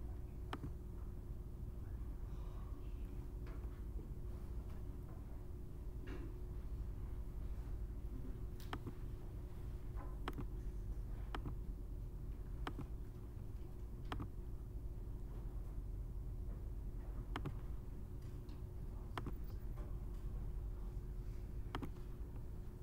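A computer mouse clicks sharply now and then.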